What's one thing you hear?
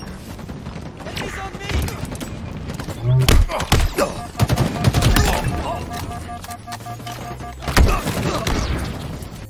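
A man talks with animation into a headset microphone.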